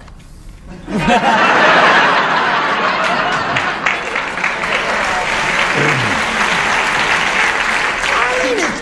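An elderly woman laughs heartily.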